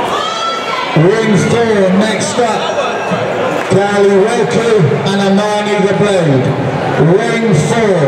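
A crowd chants loudly in rhythm.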